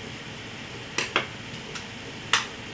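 A plastic game case clicks and rattles in a hand.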